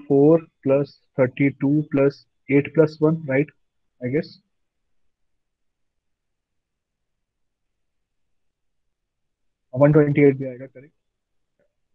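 A young man explains calmly over a microphone, in short bursts with long pauses.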